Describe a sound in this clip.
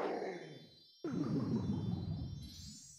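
A blast booms in a video game.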